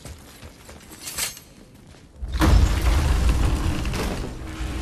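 A large wooden door creaks and scrapes open.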